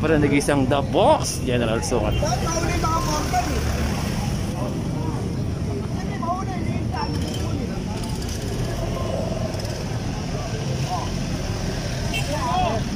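Street traffic hums steadily in the background.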